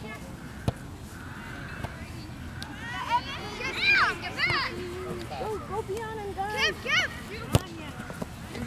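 A soccer ball is kicked with a sharp thud.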